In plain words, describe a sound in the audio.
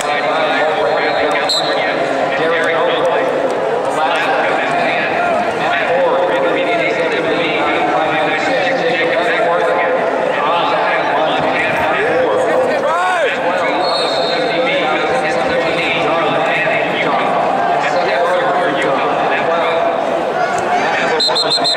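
Wrestlers' shoes squeak and thump on a mat.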